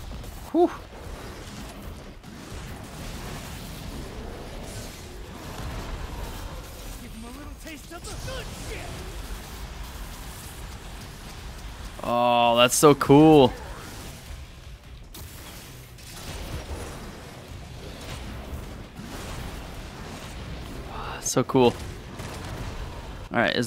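Swords clash and blasts boom in a fast fight.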